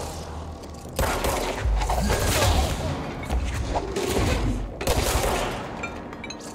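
Explosions boom and debris clatters.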